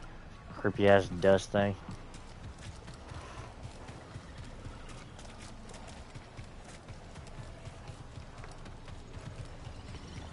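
Footsteps run quickly over rough ground.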